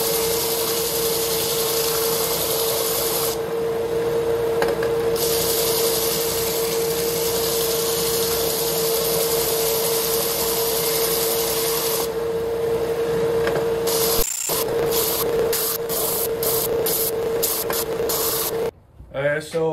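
A belt sander whirs steadily and loudly.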